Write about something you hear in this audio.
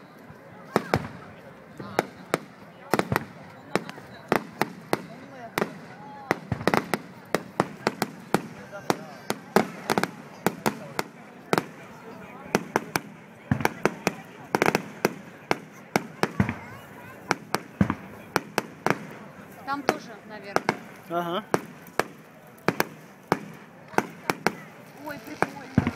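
Fireworks burst with loud bangs and pops, echoing outdoors.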